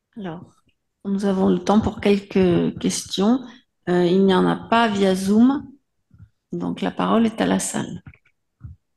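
A woman speaks calmly into a microphone, heard through a loudspeaker in a large room.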